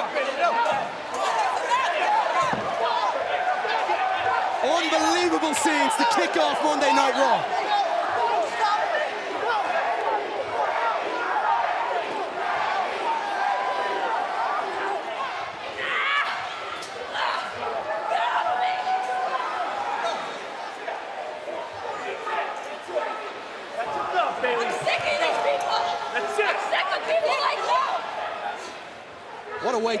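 A crowd cheers and shouts loudly all around.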